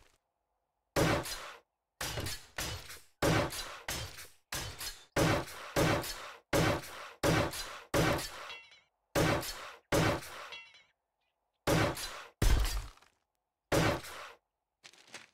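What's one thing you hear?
A power tool whirs in short bursts against stone.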